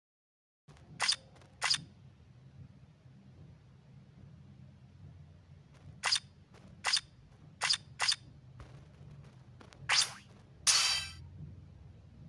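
Short bright game menu blips sound as options are tapped.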